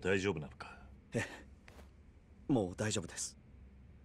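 A young man answers softly.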